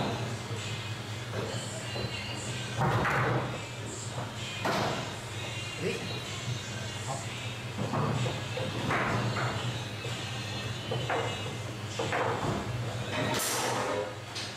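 Foosball rods rattle and thud as players spin and slide them.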